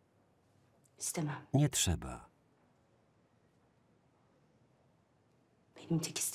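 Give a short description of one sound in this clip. A woman speaks briefly and quietly close by.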